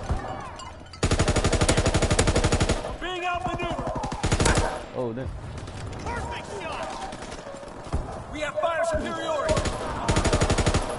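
A heavy machine gun fires in a rapid, rattling burst.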